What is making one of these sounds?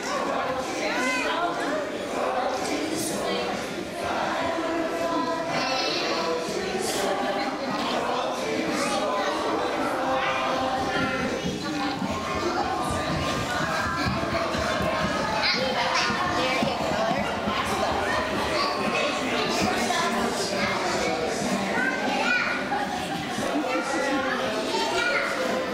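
Adults talk quietly in the background.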